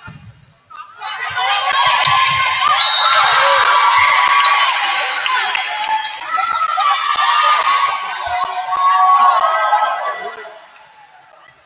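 Young women players shout and cheer loudly together.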